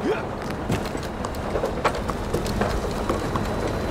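A player's footsteps clank on metal stairs.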